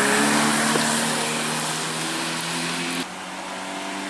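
A rally car engine revs hard as the car speeds around a bend.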